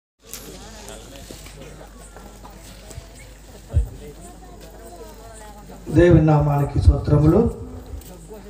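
A man preaches loudly into a microphone through loudspeakers, with animation.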